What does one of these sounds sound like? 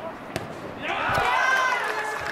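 A football is struck hard from a penalty kick outdoors.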